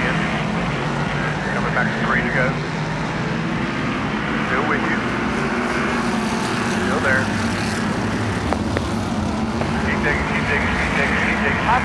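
Race car engines roar steadily as cars speed around a track.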